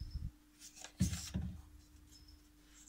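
Plastic rustles as a hand reaches into a container.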